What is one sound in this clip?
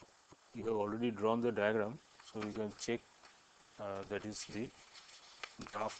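A sheet of paper rustles as it slides into place.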